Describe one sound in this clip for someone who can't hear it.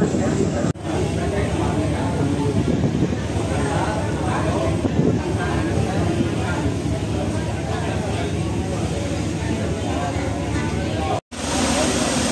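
A crowd of men and women chat nearby.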